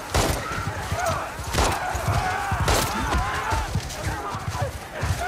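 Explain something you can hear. Horses gallop with heavy, rapid hoofbeats.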